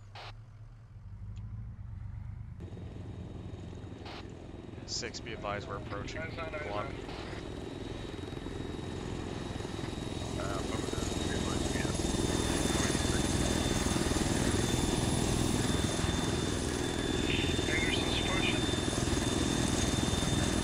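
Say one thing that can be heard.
A heavy vehicle engine rumbles steadily as it drives along.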